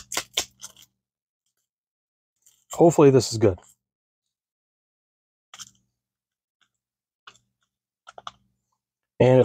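A paper packet crinkles and tears between fingers.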